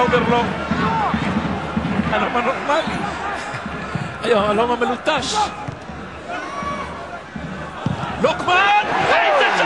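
A large stadium crowd chants and cheers loudly.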